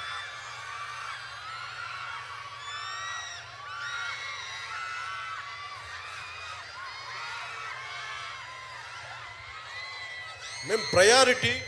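A large crowd cheers and whistles loudly outdoors.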